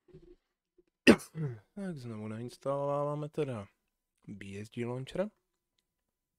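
A young man speaks briefly and with animation into a microphone.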